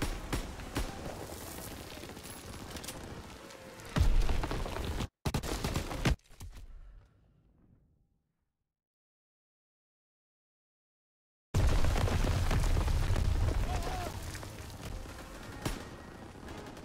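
Gunfire cracks and echoes in bursts.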